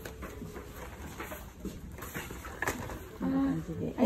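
Stiff paper crinkles and rustles close by.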